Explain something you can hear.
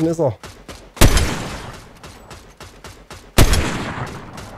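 A rifle fires loud single shots that ring out.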